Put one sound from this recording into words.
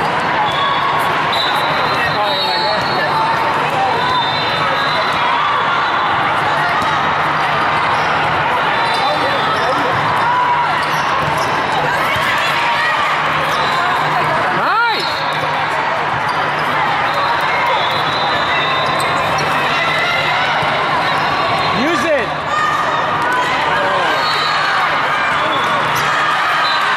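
Many voices chatter and call out across a large echoing hall.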